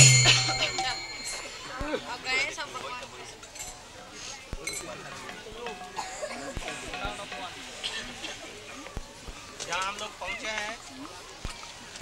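Several men talk quietly in a crowd.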